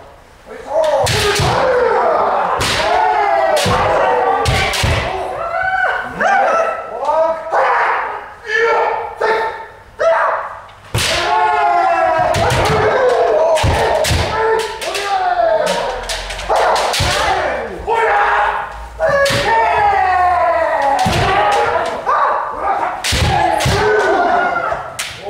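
Bare feet stamp on a wooden floor.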